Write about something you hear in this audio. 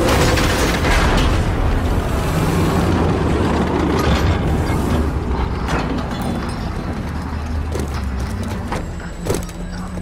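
A heavy armoured vehicle's engine rumbles low and steadily.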